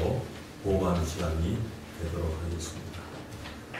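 An elderly man speaks calmly through a microphone in a large echoing hall.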